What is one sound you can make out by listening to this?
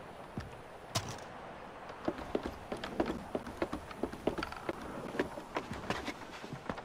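Hands and feet knock on the rungs of a wooden ladder while climbing.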